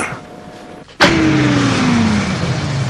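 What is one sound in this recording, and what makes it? A car engine hums as the car drives along a street.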